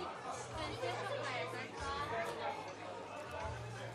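Many people chatter in a large, busy room.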